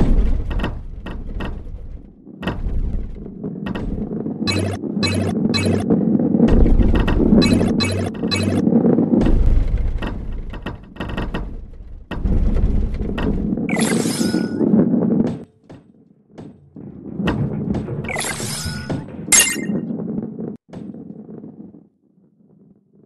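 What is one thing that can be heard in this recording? A ball rolls with a steady rumble over a wooden track.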